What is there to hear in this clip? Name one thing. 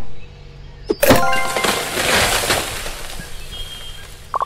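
A tree cracks and crashes to the ground.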